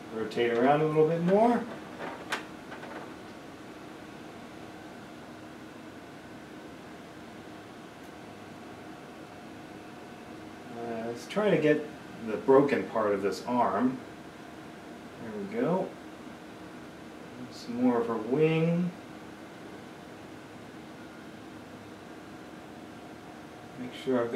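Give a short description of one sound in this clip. A man talks calmly, close by, in short bursts.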